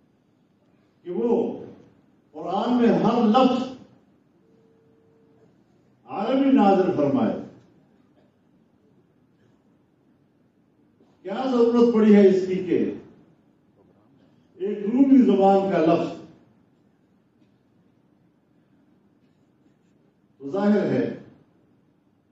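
An elderly man speaks slowly into a microphone, in short phrases with pauses.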